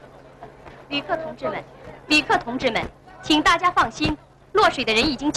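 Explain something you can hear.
A young woman speaks urgently into a microphone.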